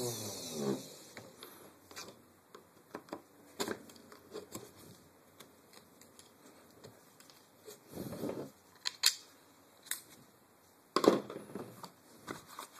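Small metal parts click and clack.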